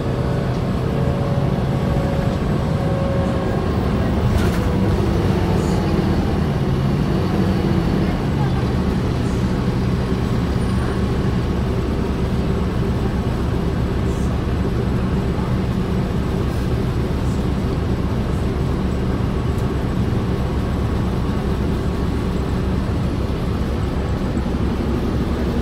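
A vehicle's engine hums steadily as it drives along a road, heard from inside.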